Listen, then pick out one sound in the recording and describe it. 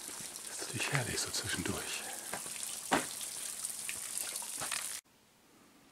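Water trickles from a spout and splashes onto a metal grate.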